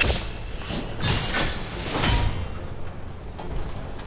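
A short triumphant fanfare plays.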